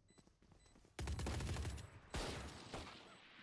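Pistol shots ring out in a video game.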